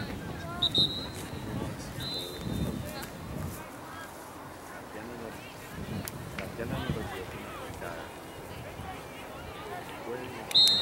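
A referee's whistle blows in short, shrill blasts.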